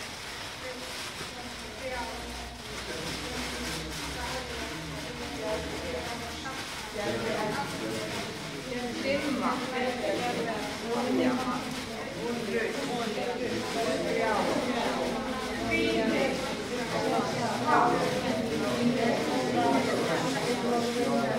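A mixed choir of men and women sings together in a room with some echo, swelling louder as it goes.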